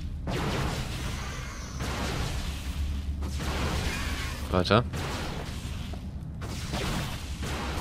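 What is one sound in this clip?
Gunfire and blasts ring out in a battle.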